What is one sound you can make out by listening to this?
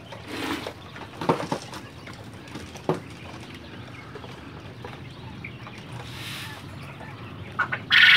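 A gloved hand pats and spreads loose soil on a hard floor.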